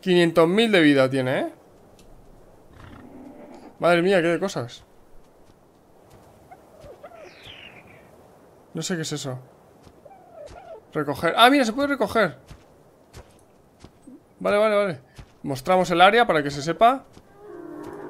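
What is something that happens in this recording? A young man talks animatedly into a close microphone, in short bursts.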